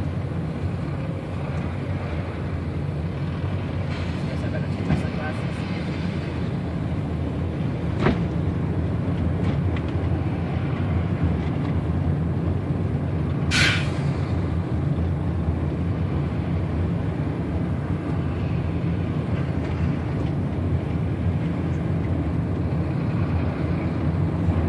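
A vehicle engine rumbles steadily from inside, heard through a closed window.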